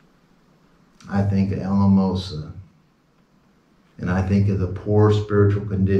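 A middle-aged man speaks calmly and clearly into a nearby microphone.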